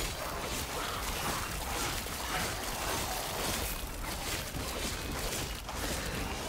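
Magic spells crackle and burst in rapid succession.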